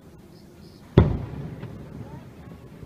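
A firework bursts with a deep boom in the distance.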